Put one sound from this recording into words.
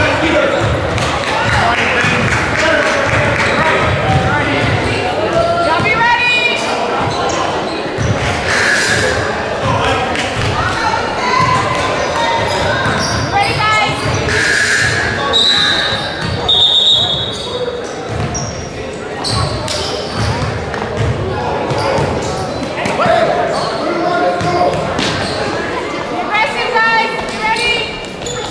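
A crowd of spectators chatters and calls out in the echoing hall.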